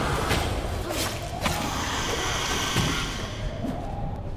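A weapon fires with a loud fiery burst.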